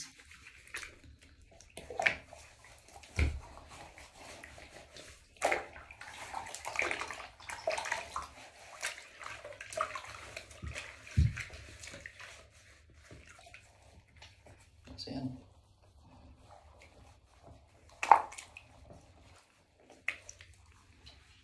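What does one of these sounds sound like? Wet hands rub and slap on skin.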